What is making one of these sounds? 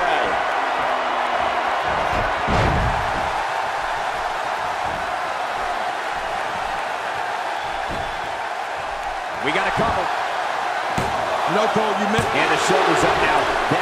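A large crowd cheers and murmurs steadily in a big arena.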